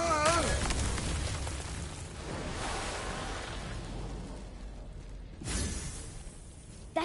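Rock crumbles and rumbles deeply.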